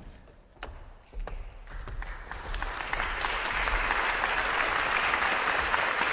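An audience applauds in a large hall, the clapping swelling and growing steady.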